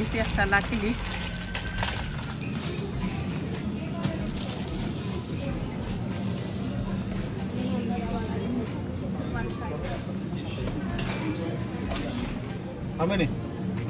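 A shopping trolley rattles as it rolls along.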